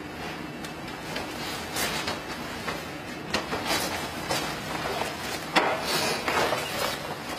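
A man's loose sleeves swish sharply through the air.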